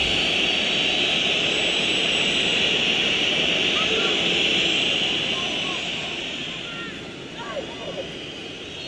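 A stadium crowd roars steadily, then slowly quietens.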